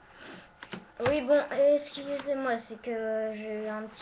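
A boy speaks loudly and with animation, close to a microphone.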